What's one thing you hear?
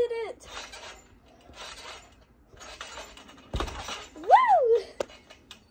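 A trampoline mat thumps and creaks as a girl bounces on it.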